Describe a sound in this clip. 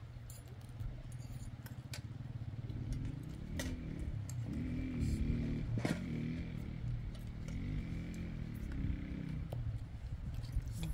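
Spoons clink and scrape against plates.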